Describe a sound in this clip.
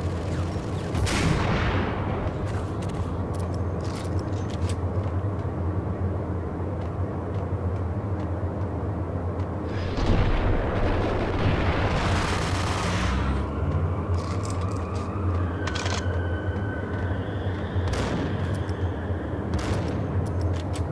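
Gunshots ring out and echo.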